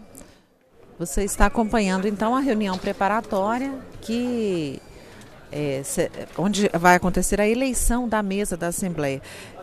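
A woman speaks calmly through a microphone, echoing in a large hall.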